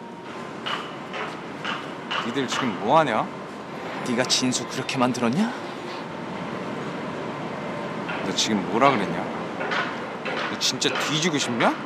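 A young man speaks in a low, tense voice close by.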